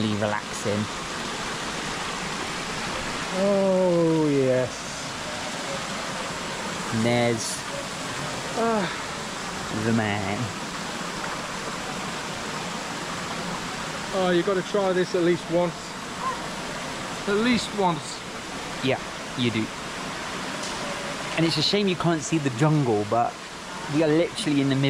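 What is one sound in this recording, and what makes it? A steady hiss of bubbling water runs throughout.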